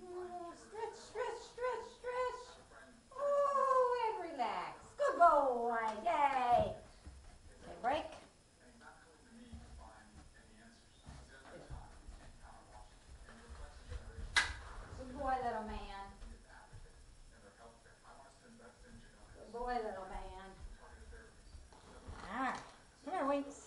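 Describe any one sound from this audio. A woman talks to a dog in a high, sing-song voice, close by.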